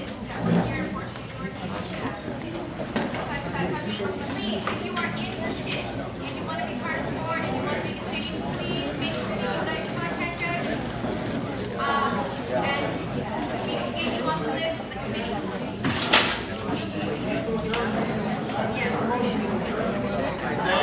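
A crowd of men and women chat all at once in a large, echoing hall.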